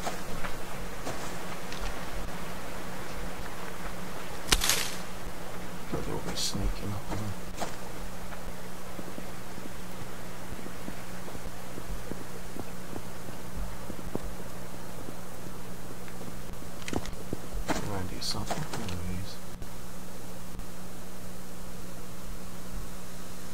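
Footsteps rustle through grass and crunch on ground.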